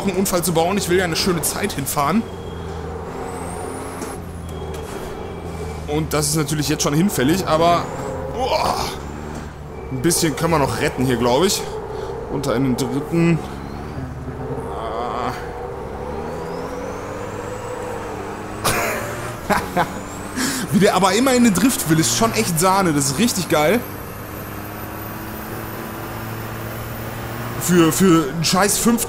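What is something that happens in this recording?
A racing truck engine drones and changes pitch as it speeds up and slows down.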